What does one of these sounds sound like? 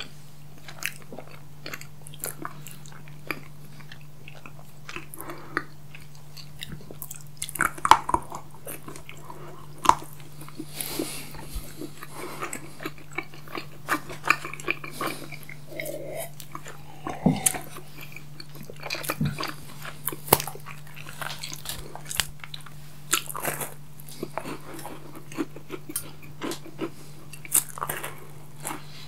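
A young man and a young woman chew food noisily close to a microphone.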